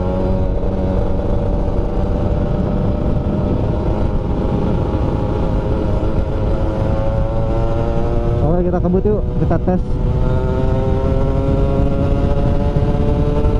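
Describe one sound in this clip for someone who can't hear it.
A scooter engine hums steadily at speed, dipping briefly as the rider shifts off the throttle before pulling again.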